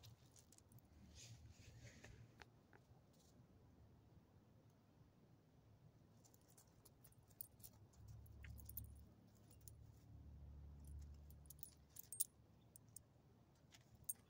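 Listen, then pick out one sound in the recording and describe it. A dog's paws crunch on gravel.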